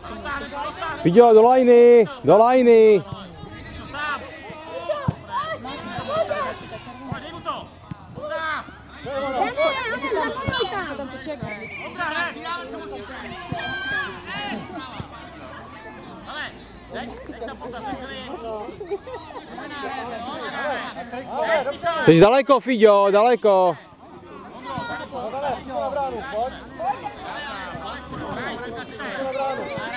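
Children shout and call out across an open field.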